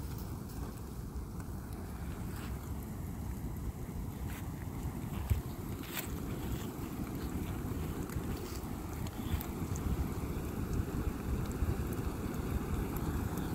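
A large fire roars steadily outdoors.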